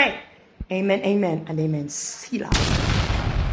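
A young woman speaks with animation close to the microphone.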